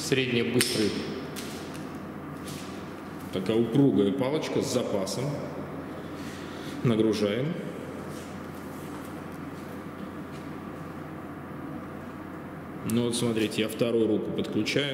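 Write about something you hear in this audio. A man speaks calmly in short bursts in an echoing room.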